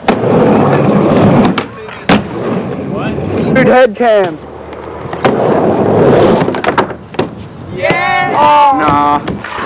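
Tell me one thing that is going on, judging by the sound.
Skateboard wheels roll and rumble on a concrete ramp.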